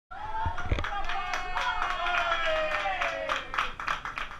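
A woman cheers with a long, loud, joyful cry nearby.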